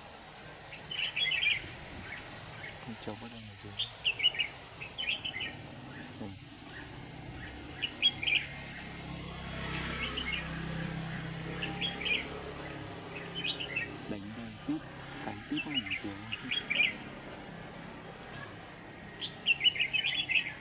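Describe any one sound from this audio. A small bird chirps in quick bursts nearby.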